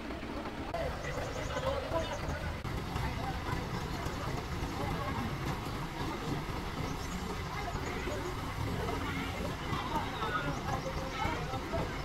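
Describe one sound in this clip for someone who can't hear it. A truck engine rumbles steadily nearby.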